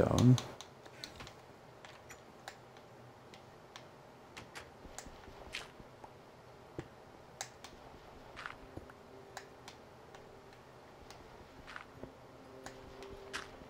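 Blocks are dug out with short, repeated crunching knocks.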